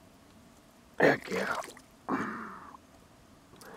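A small fish splashes in shallow water.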